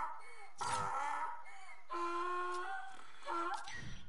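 Short electronic tones chime for a countdown.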